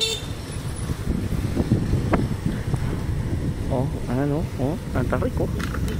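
A motorbike engine hums as it climbs past.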